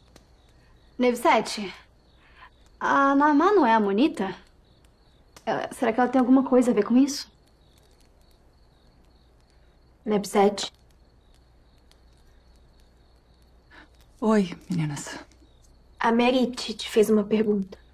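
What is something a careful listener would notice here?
Another young woman speaks with emotion, close by, in short bursts.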